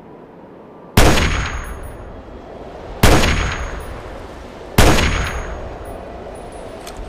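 A rifle fires three loud shots that echo and fade.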